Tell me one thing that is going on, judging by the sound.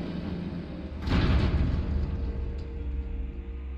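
A heavy railway carriage rumbles and clanks as it shifts.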